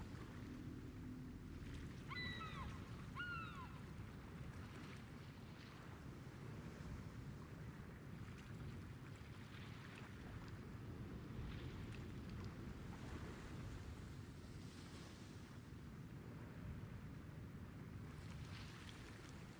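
Water laps softly against a ship's hull.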